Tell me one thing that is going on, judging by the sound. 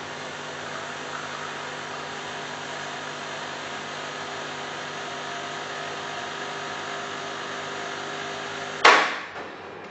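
A coffee machine hums and whirs steadily as it pours coffee.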